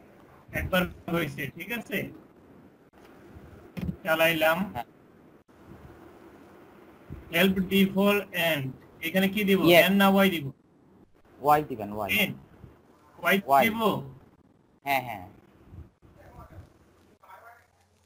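A young man talks calmly through a microphone, in short bursts with pauses.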